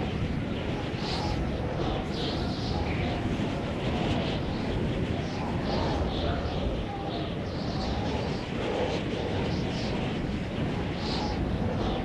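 Wind rushes steadily past in a constant roar.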